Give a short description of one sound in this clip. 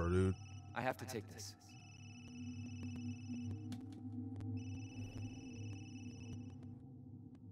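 A phone rings.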